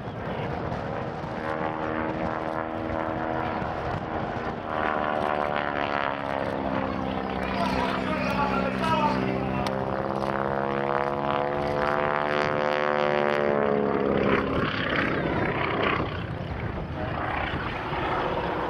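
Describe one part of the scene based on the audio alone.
A propeller plane's engine drones overhead, rising and falling in pitch as it loops and rolls.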